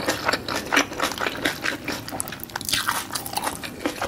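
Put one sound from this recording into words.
Fingers dip food into a thick sauce with a soft squelch.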